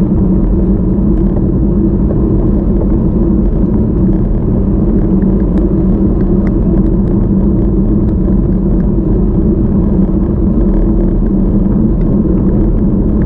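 A bicycle chain clicks and ticks softly.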